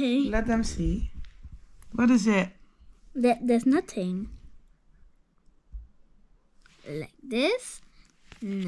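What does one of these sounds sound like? A young child speaks with animation close by.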